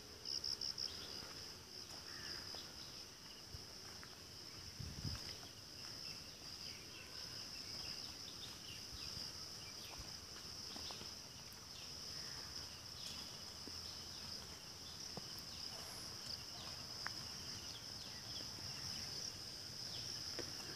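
Footsteps rustle through low leafy plants.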